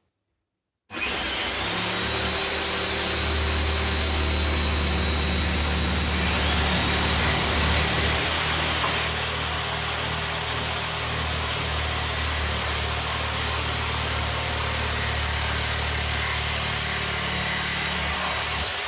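A power tool's motor runs steadily and loudly.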